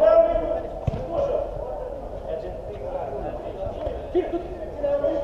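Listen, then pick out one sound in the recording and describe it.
Men shout during a game in a large echoing hall.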